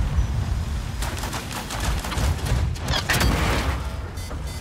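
Explosions crash near the tank.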